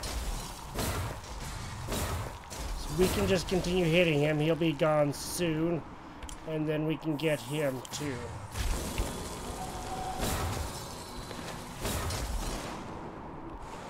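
Magic spells whoosh and burst in short blasts.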